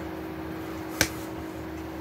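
Hands clap once sharply, close by.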